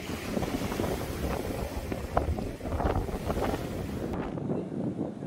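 Waves splash and churn on open water in the wind.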